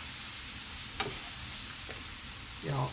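Metal tongs click against a pan.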